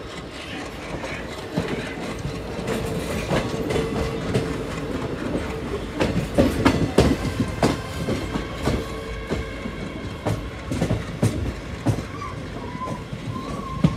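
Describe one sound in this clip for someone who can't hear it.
Another train passes close by, growing louder.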